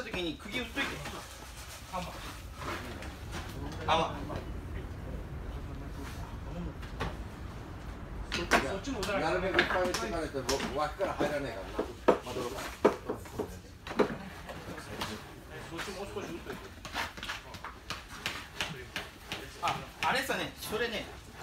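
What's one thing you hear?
Several men talk with one another nearby.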